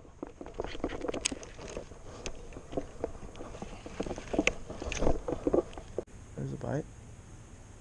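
A fishing reel clicks and whirs as a line is cast and reeled in.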